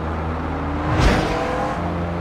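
A gear shift thumps as the car speeds up.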